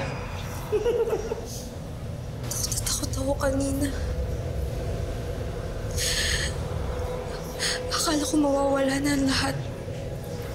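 A young woman speaks nearby, weakly and with distress.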